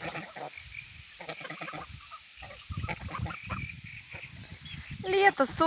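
Geese dabble and splash softly in shallow water.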